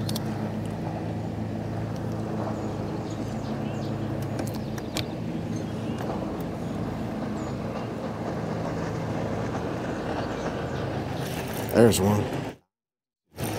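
An electric boat motor hums steadily.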